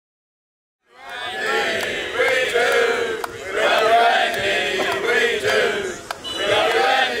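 A group of men talk and laugh loudly together nearby.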